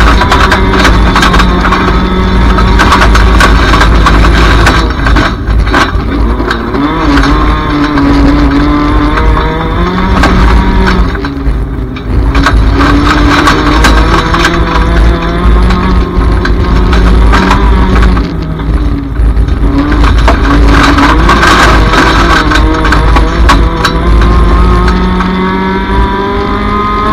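A race car engine roars loudly, revving up and down through the gears.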